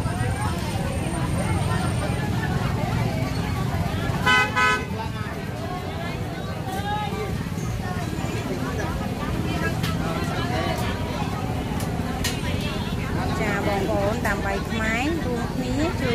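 Plastic bags rustle as a woman handles them.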